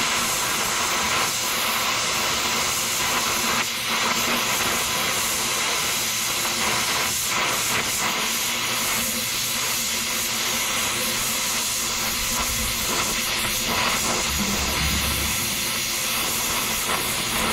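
Sparks crackle and spit as hot metal is cut.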